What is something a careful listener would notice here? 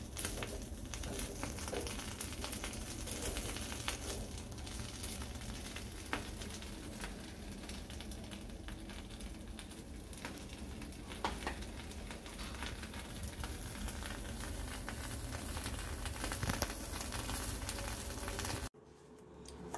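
A gas burner hisses and roars steadily.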